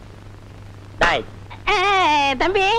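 A man talks with animation.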